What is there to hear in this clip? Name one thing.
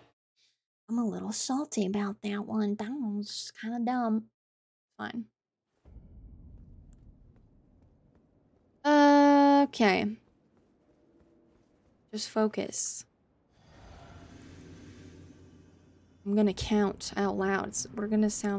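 A young woman talks casually into a close microphone.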